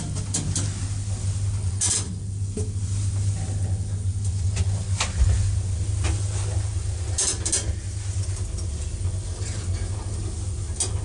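An elevator hums with a low, steady drone.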